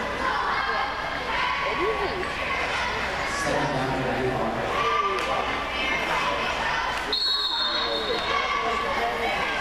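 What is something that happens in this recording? A crowd of spectators chatters steadily in a large echoing indoor hall.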